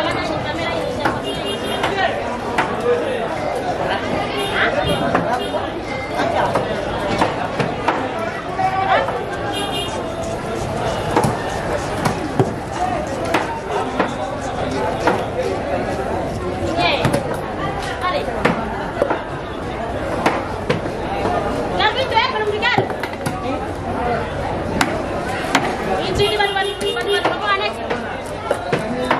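Knives scrape and chop against fish on a wooden board.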